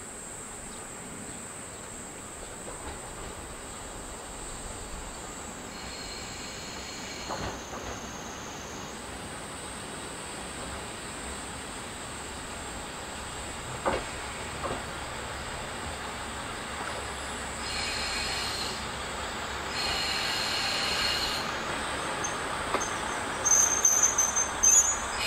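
A diesel train rumbles closer as it pulls in.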